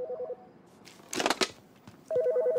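A phone handset is lifted with a click.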